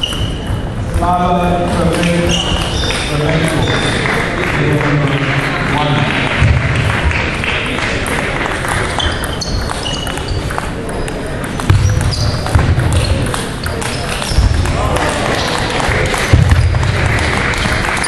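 A table tennis ball clicks back and forth on a table and paddles.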